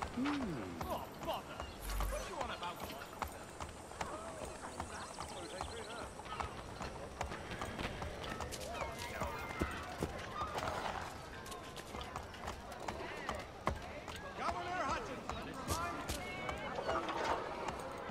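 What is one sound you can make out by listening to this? Horse hooves clop steadily on a street.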